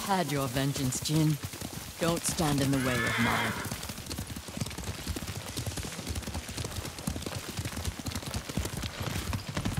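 Horse hooves pound quickly on a dirt path.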